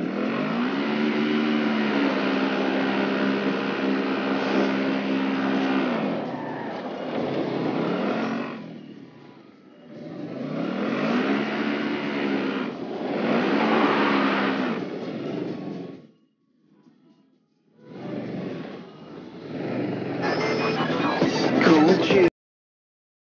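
An engine revs loudly and its pitch rises and falls.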